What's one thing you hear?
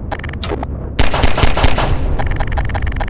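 Pistol shots ring out in quick succession.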